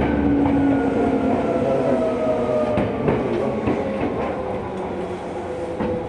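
A train motor whines, slowly falling in pitch as it slows down.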